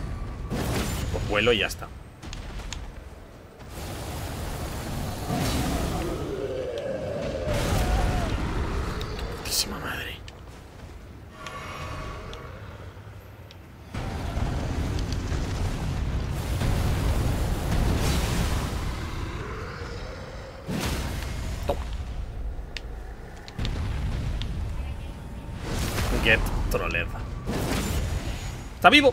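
Heavy blades clash and slash in a fight.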